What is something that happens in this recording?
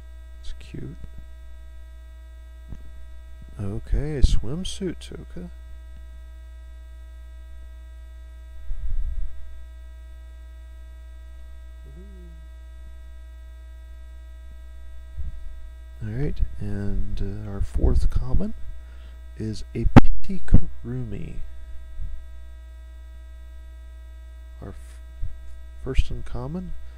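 Playing cards shuffle and slide softly in hands.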